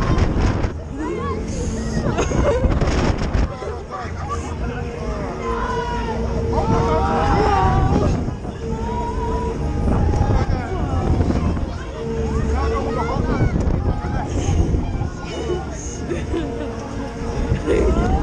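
Wind buffets loudly against a microphone on the ride.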